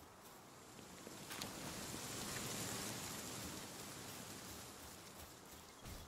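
A creature swoops past with a rushing whoosh.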